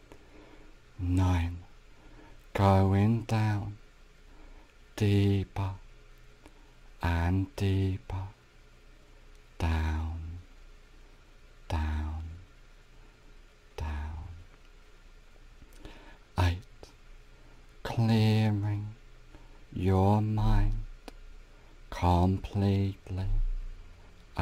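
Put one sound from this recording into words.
A man speaks calmly and slowly, close to the microphone, with pauses between phrases.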